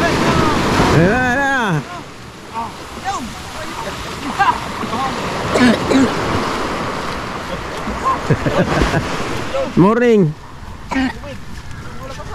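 Men call out to each other outdoors.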